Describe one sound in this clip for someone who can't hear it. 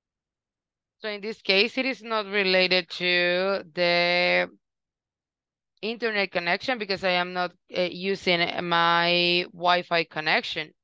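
A young woman sings over an online call.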